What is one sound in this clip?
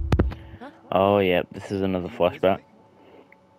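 A young woman asks a short question.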